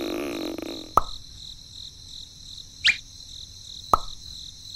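A small plastic wheel clicks as a hand pulls it off and snaps it back on.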